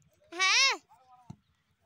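A young man shouts loudly nearby.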